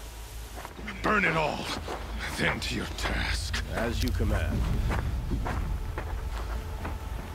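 A man speaks in a low, menacing voice.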